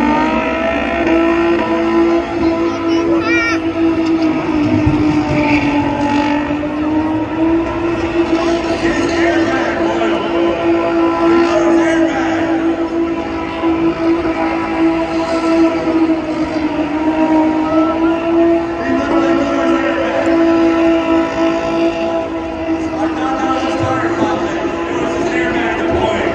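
Tyres screech on tarmac in the distance.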